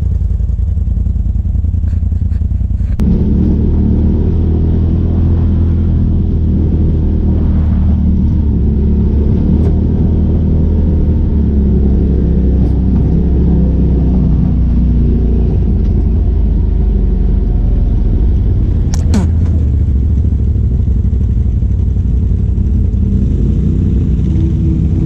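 An off-road buggy engine drones loudly and steadily up close.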